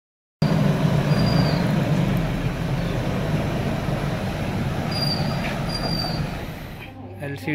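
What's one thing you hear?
A vehicle engine rumbles as it rolls slowly over a rough lane.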